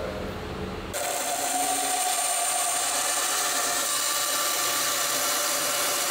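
A band saw hums steadily as it runs.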